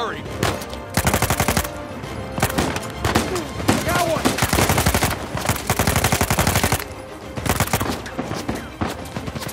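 Rapid gunfire rattles in bursts with sharp echoing cracks.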